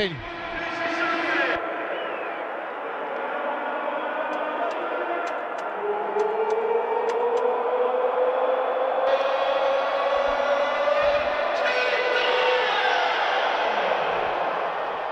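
A large crowd cheers and roars loudly in a stadium.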